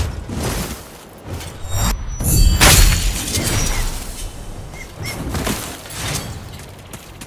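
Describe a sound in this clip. Heavy sword blows thud and clash.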